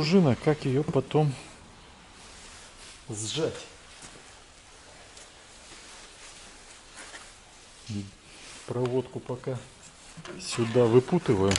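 Plastic parts click and rattle as hands handle them.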